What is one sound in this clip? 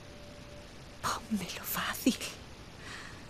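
A woman speaks quietly.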